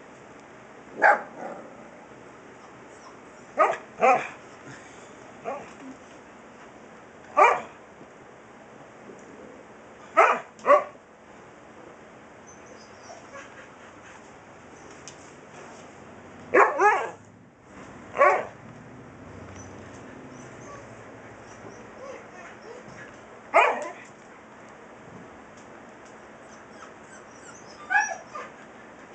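A large dog howls and grumbles in short, loud bursts close by.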